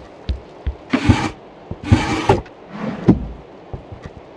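A metal drawer scrapes as it slides open.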